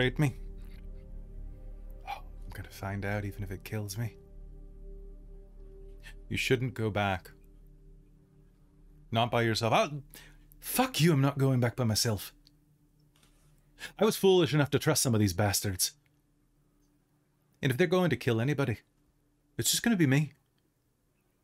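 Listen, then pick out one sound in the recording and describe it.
A man speaks with animation over an online call, with pauses between phrases.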